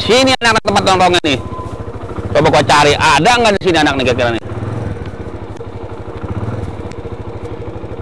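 A motorcycle rides toward the listener.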